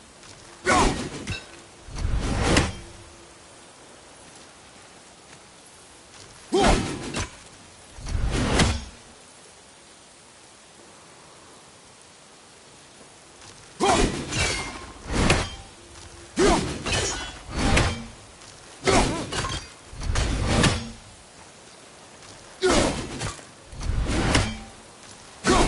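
A waterfall splashes steadily.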